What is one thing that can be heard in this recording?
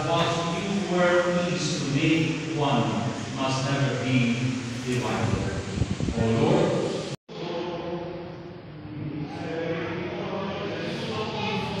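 A congregation sings together in a large echoing hall.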